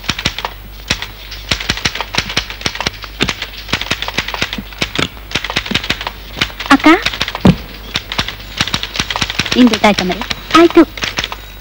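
A typewriter clacks rapidly and steadily.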